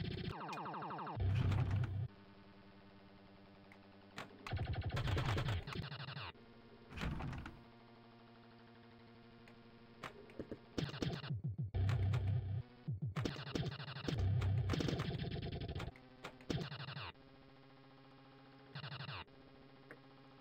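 Pinball game music plays steadily.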